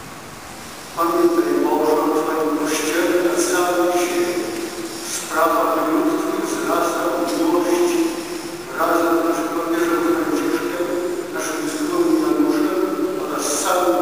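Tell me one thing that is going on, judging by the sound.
A large crowd of men and women sings together slowly, echoing through a large hall.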